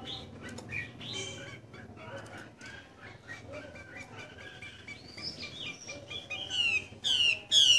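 A small bird chirps and warbles close by, with loud sharp trills toward the end.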